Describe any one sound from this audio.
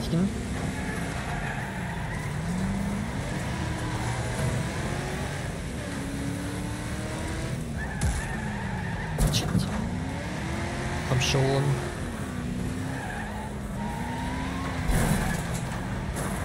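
Race car engines roar and rev up and down.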